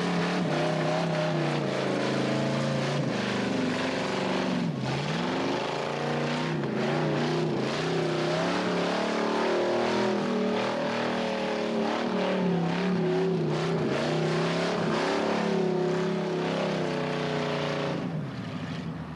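Car tyres squeal as they spin on the tarmac.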